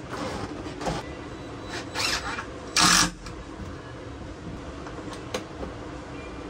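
Tools knock and clatter against wood close by.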